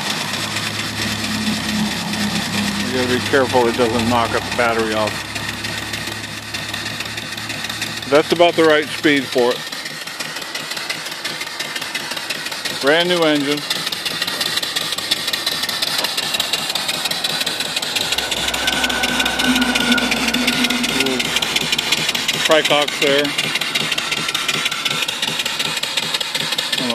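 A small steam engine runs with a fast, even chugging.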